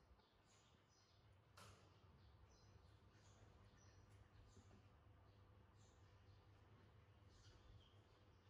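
A plastic toy bumps and scrapes against a wooden tabletop.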